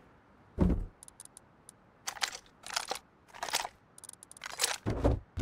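Short soft clicks sound as items are moved about.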